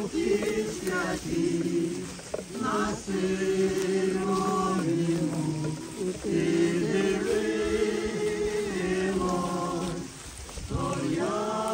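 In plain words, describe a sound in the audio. A crowd of men and women sings a slow song together outdoors.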